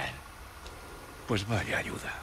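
A man replies with a short, dry remark.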